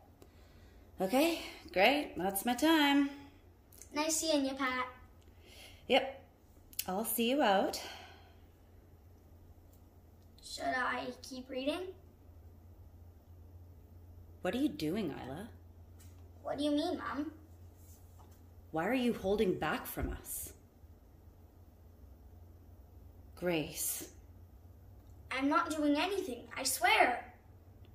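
A young girl speaks clearly and close by, in short phrases with pauses between them.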